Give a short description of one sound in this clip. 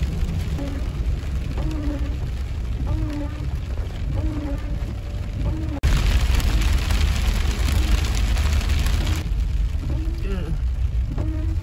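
Windscreen wipers swish across the glass.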